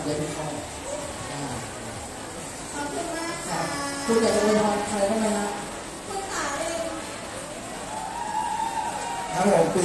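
A crowd of young women chatters and calls out nearby.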